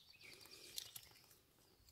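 A small wood fire crackles.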